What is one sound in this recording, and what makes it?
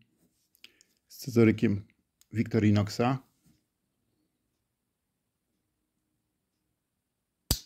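A pocket knife blade clicks into place.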